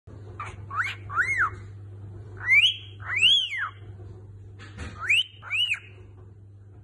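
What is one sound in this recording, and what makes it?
A cockatiel whistles a rising and falling tune up close, in short bursts.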